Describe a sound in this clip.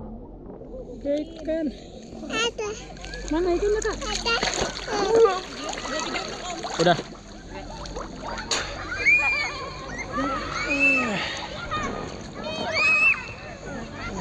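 A small child babbles and squeals.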